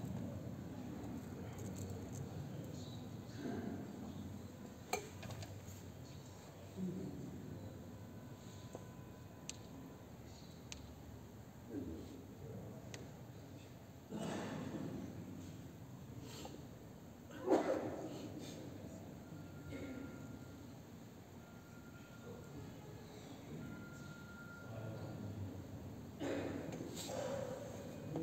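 A crowd of men murmurs softly in a large echoing hall.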